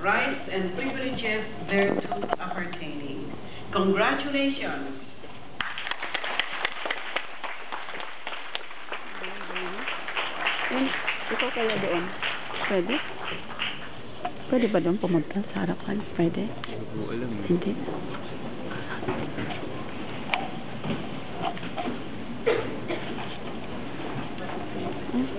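A crowd chatters and murmurs in a large echoing hall.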